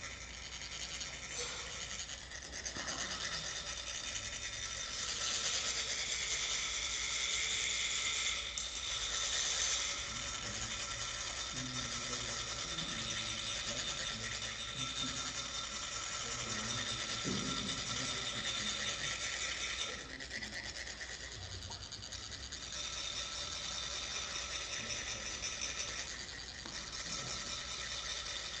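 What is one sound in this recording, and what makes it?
Metal funnels rasp with a steady, high scratching sound.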